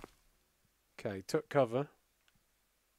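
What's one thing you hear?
A man speaks briefly and casually into a microphone.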